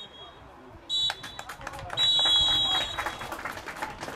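A referee blows a sharp whistle several times.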